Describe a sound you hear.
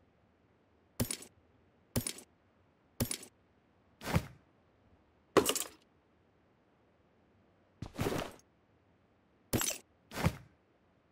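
Short gear-rustling sound effects play as items are picked up.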